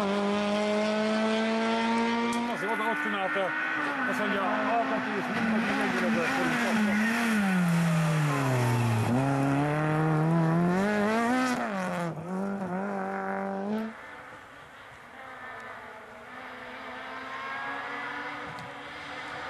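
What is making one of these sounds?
A racing car engine revs hard and roars as the car speeds past.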